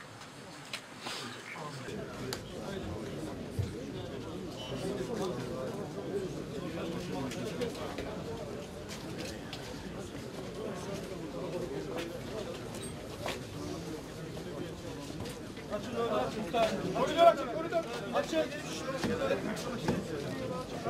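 A large crowd of men murmurs and talks outdoors.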